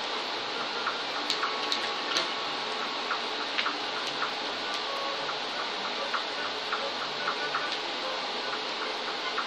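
Video game music and sound effects play from a loudspeaker, heard across a room.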